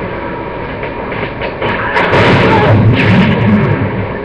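A sniper rifle shot sounds from a video game through a TV speaker.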